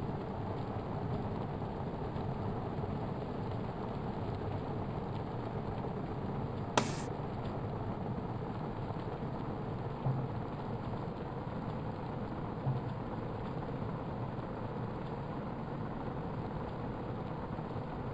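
A bike trainer whirs steadily close by.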